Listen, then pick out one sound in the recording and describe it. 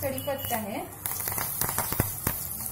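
Leaves sizzle loudly as they drop into hot oil.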